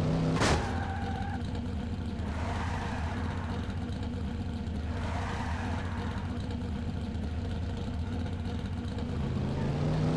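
Tyres skid and screech on pavement.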